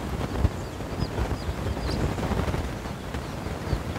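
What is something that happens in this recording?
A hen scratches and pecks in dry leaf litter.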